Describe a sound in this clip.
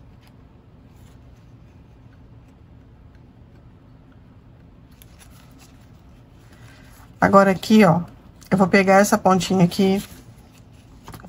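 Stiff ribbon rustles softly as hands fold and squeeze it.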